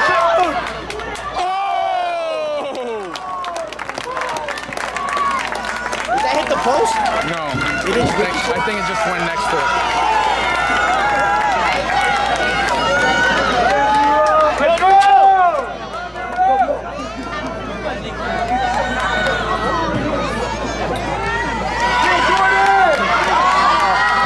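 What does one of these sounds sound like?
A crowd of spectators shouts and cheers close by, outdoors.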